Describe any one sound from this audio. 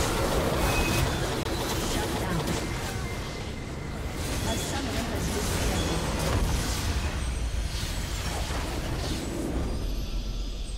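Magic spells burst and crackle in a busy fantasy battle.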